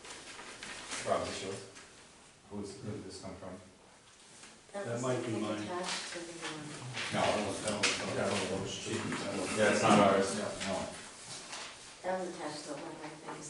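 A man speaks calmly in a meeting room.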